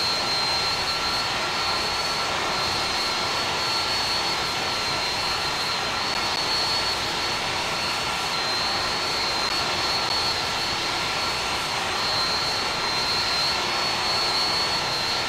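Jet engines roar and whine steadily.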